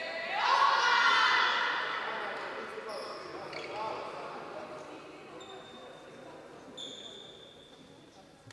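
A crowd cheers loudly in a large echoing hall and then quiets down.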